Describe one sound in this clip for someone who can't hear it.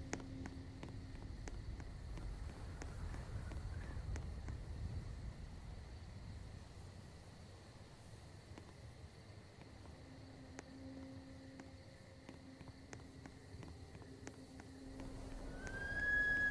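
Footsteps patter at a steady running pace.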